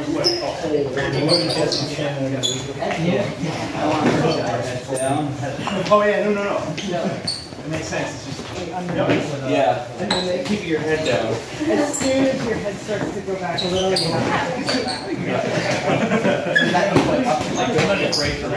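Shoes shuffle and tap on a hard floor.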